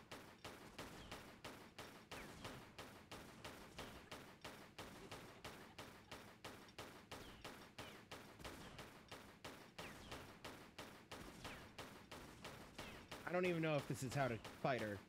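Pistols fire in rapid, steady bursts of shots.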